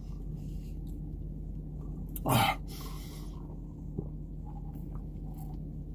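A man sips a drink through a straw.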